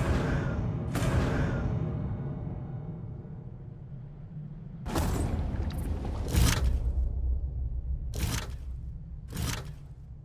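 Soft whooshes sound as game menus open and close.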